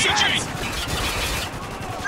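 Machine gun fire rattles in short bursts.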